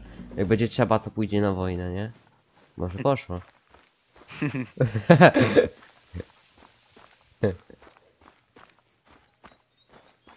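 Footsteps swish through dry grass.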